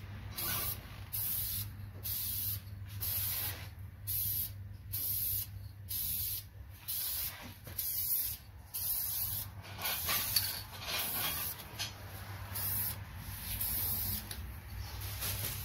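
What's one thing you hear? An aerosol spray can hisses in short, repeated bursts.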